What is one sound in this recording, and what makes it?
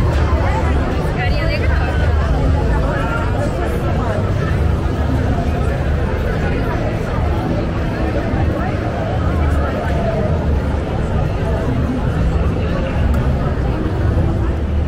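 A lively crowd of men and women chatters and laughs all around, outdoors.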